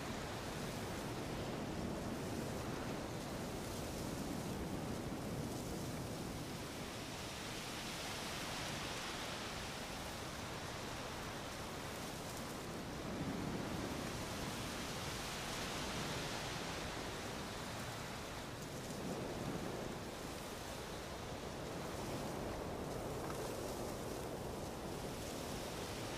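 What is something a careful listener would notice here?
Wind blows through trees outdoors, rising and falling in gusts.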